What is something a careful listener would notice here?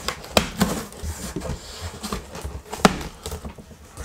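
Tape rips off a cardboard box.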